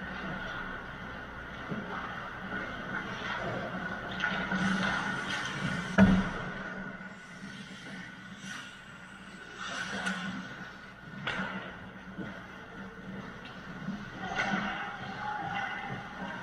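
Skate blades scrape and hiss on ice in a large echoing hall.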